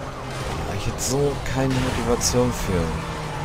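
A car crashes hard into another car.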